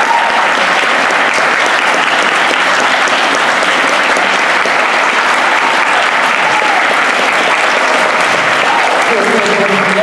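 A large audience applauds loudly in an echoing hall.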